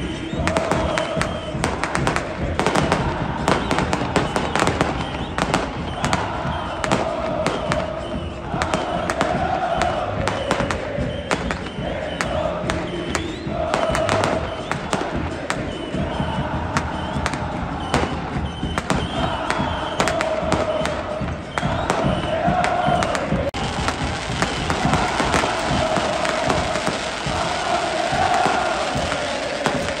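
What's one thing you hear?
Fireworks crackle and pop sharply.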